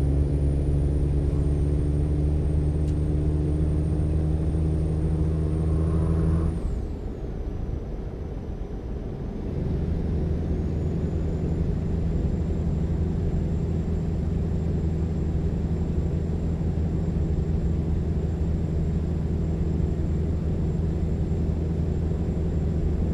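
Tyres roll along a road.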